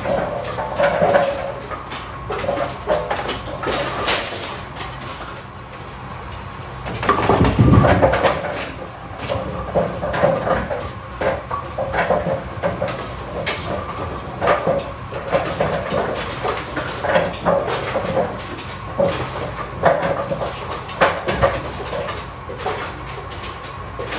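A pinsetter machine hums and clanks steadily.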